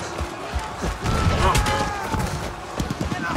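A man shouts a battle cry loudly.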